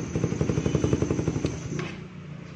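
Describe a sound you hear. A motorcycle engine idles with a rapid, throbbing rumble.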